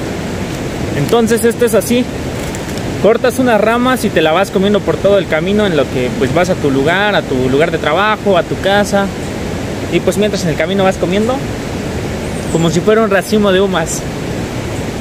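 A young man talks calmly and clearly, outdoors.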